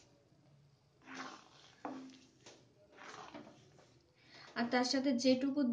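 Milk bubbles and simmers in a pan.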